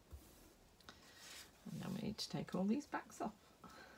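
A card slides across a paper surface.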